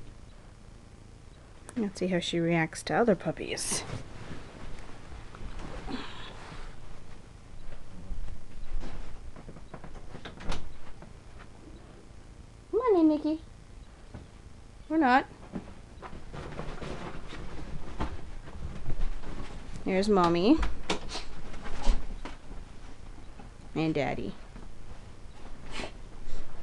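Puppies scuffle and rustle on soft bedding.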